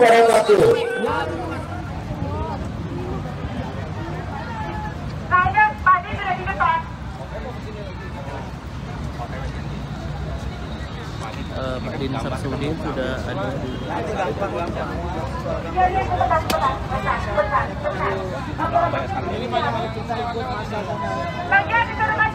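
A crowd murmurs and talks outdoors.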